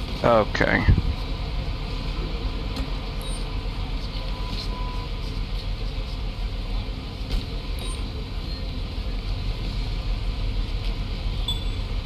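City traffic hums steadily in the background.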